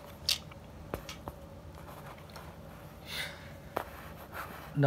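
Wooden abacus beads click as a hand slides them.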